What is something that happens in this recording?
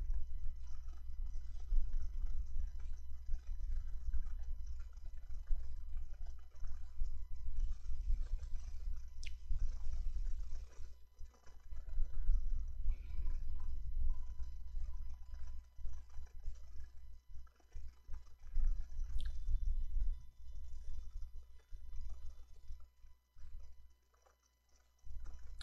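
A man talks steadily into a microphone.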